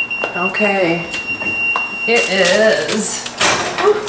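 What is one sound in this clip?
An oven door opens with a clunk.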